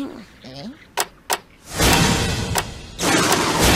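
A cartoon explosion bangs and crackles.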